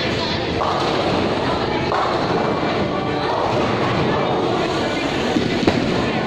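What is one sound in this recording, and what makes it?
A bowling ball rolls down a lane with a low rumble in a large echoing hall.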